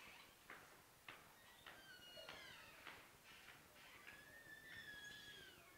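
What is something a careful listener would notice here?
Footsteps march in an even rhythm on a hard floor.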